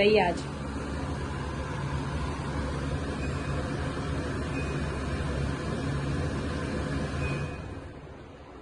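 A pot hisses and rumbles steadily as steam escapes.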